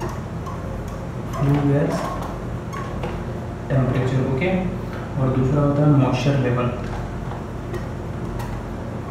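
A marker squeaks faintly as it writes on a whiteboard.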